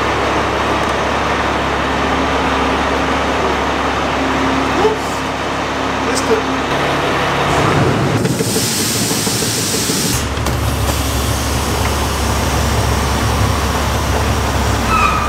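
A large truck engine rumbles steadily nearby.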